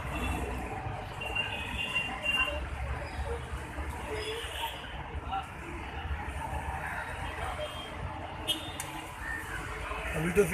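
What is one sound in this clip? Street traffic hums steadily nearby.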